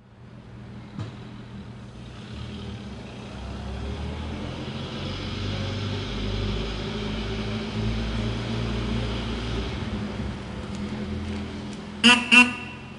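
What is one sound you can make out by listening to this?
A car engine rumbles as a car rolls slowly away, echoing in a large hall.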